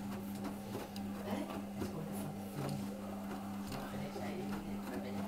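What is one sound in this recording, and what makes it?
Clothes tumble and thump softly inside a washing machine drum.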